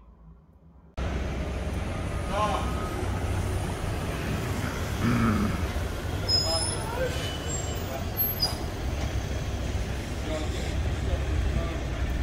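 Outdoor street noise rumbles steadily.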